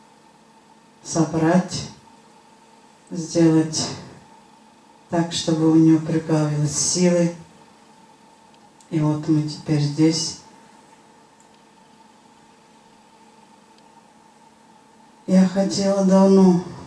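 A middle-aged woman speaks calmly into a microphone, pausing between phrases.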